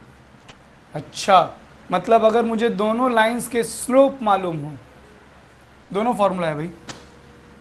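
A young man explains calmly, close by.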